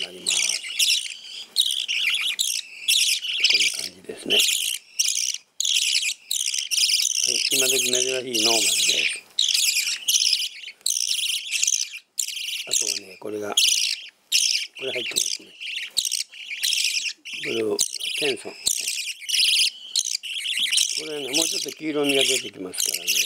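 Young budgerigar chicks chirp and squeak loudly and constantly.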